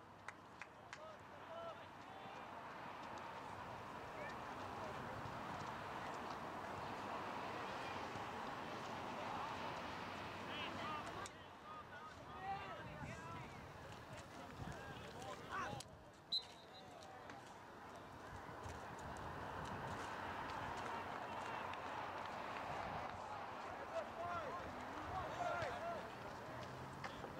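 Young players shout and call out across an open field in the distance.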